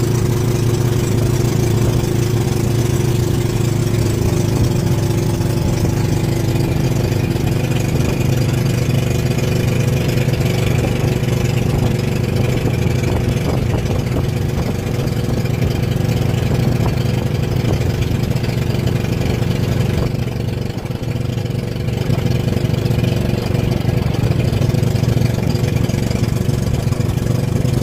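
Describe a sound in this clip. A boat engine drones steadily and loudly close by.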